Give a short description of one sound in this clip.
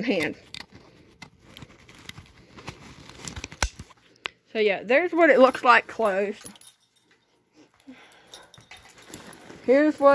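Fabric rustles as a bag is handled.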